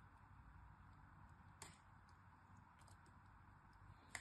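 Soap crumbles and crunches softly as fingers break it apart.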